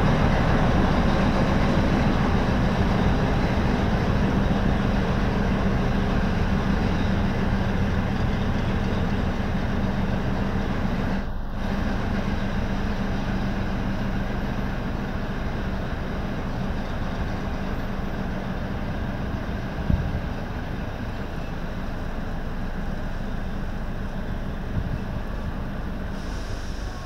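A diesel locomotive rumbles steadily as a train slowly approaches.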